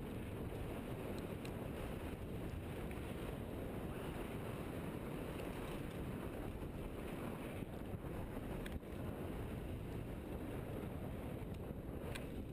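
Wind roars steadily across a close microphone.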